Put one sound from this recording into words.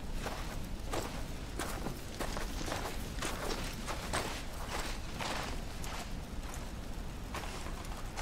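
A man speaks firmly, close by.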